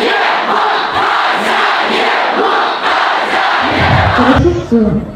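A large crowd cheers and shouts in a big hall.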